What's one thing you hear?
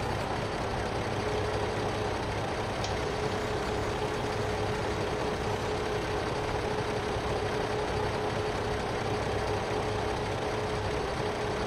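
A crane's hydraulics whine as the arm swings and lowers.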